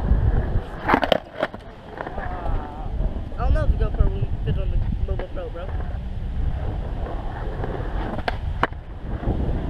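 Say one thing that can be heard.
A skateboard clacks sharply against concrete.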